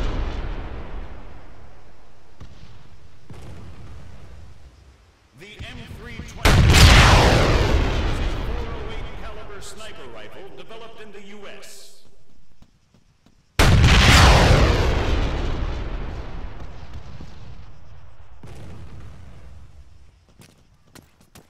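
A large explosion booms in the distance and rumbles away.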